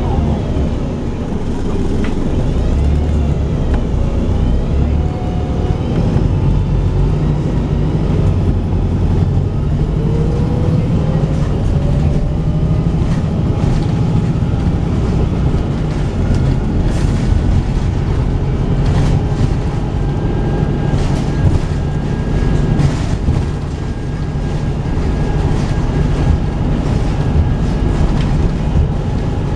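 Tyres hiss on a damp road surface.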